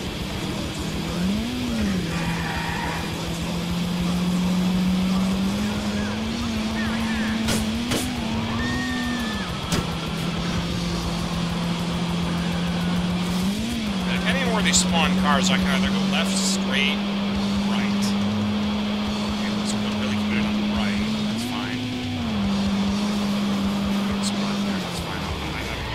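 A car engine hums steadily, its pitch briefly rising and falling now and then.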